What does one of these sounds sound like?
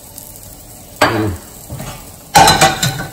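A metal pan clanks as an omelette is flipped into it.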